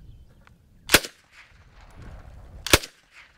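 A gun fires single sharp shots outdoors.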